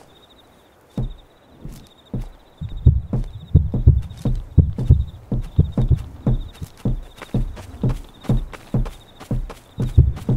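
Heavy footsteps thud at a steady walking pace, speeding up to a run.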